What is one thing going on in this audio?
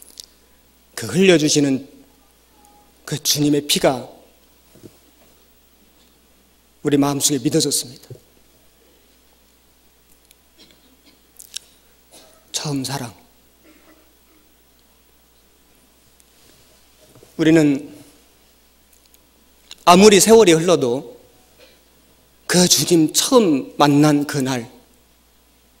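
A middle-aged man speaks slowly and calmly into a microphone, with long pauses between phrases.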